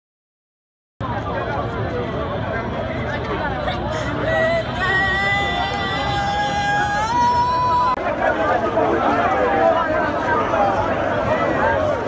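A large crowd chatters and calls out loudly outdoors.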